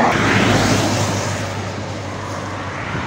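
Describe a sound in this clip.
A bus roars past close by on a road.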